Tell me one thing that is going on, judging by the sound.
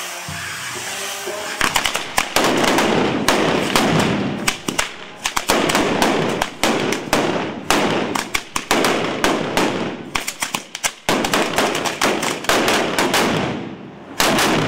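A firework wheel hisses and fizzes as it spins.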